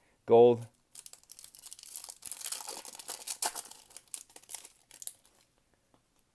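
A foil wrapper crinkles and tears as it is opened.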